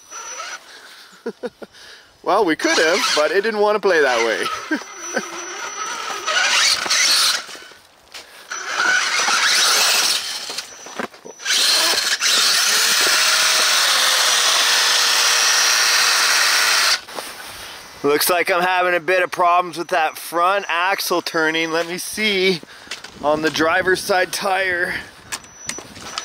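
A small electric motor whines as a toy truck crawls along.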